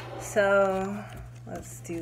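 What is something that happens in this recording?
Paper money rustles in a young woman's hands.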